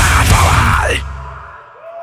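A crowd cheers loudly in a large hall.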